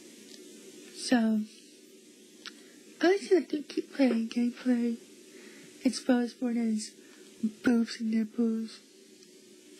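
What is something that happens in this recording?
A young woman speaks with excitement close by.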